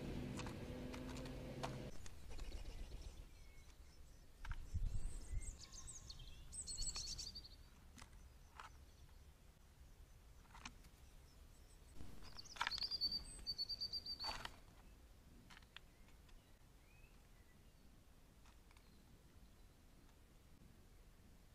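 A magpie pecks and taps at a bird feeder.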